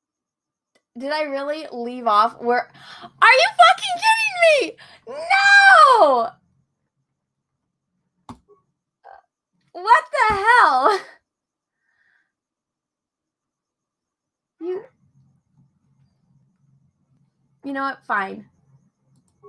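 A young woman talks with animation into a close microphone, in bursts with pauses.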